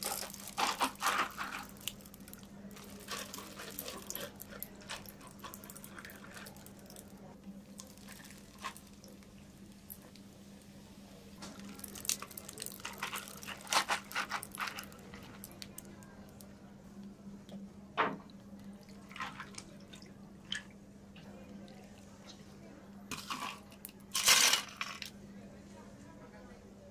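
Ice cubes clink and crackle in a cup.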